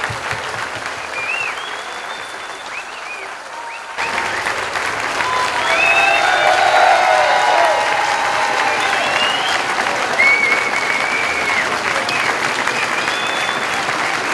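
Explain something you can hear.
An electric guitar plays through loud amplifiers.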